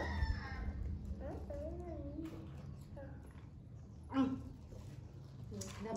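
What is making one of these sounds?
A young boy talks loudly nearby.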